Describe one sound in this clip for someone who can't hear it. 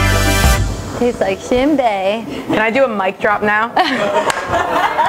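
Two young women laugh together close by.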